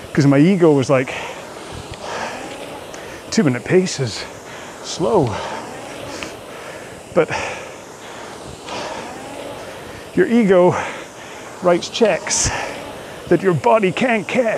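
A man talks calmly and clearly into a close microphone.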